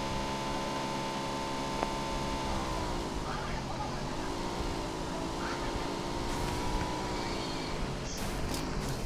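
A motorcycle engine hums and changes pitch as it rides.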